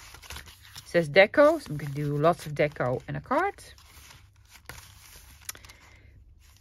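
Paper rustles and crinkles as hands handle envelopes.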